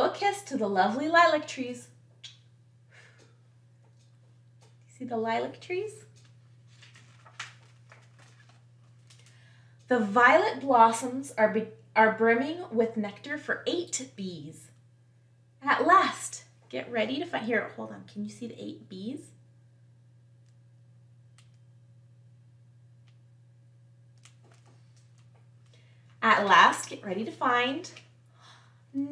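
A young woman reads aloud with animation, close to a microphone.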